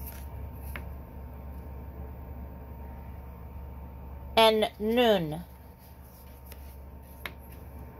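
A paper card rustles briefly as a hand handles it.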